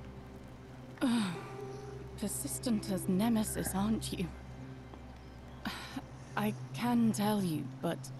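A young woman speaks wearily and hesitantly, close to a microphone.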